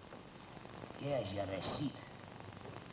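A second man answers in a low voice.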